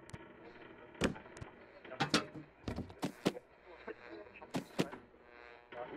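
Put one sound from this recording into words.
Darts thud into a wooden board.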